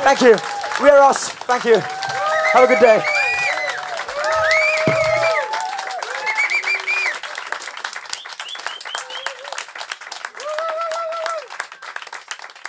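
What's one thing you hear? Young men cheer and whoop close by.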